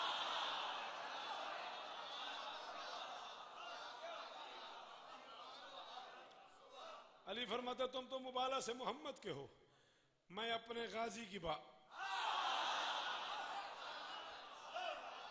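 A crowd cries out and wails together.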